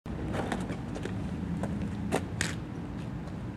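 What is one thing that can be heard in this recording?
Shoes step on pavement.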